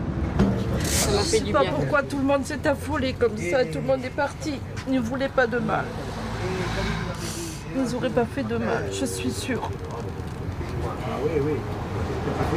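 A middle-aged woman sobs and speaks in a choked voice close by.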